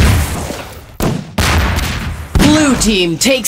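Gunshots bang sharply in a hard, echoing space.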